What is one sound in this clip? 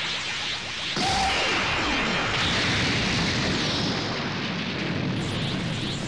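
A huge explosion booms and roars.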